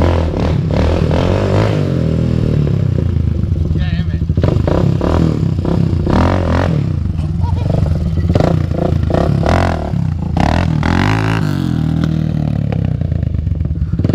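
A quad bike engine revs loudly and unevenly nearby.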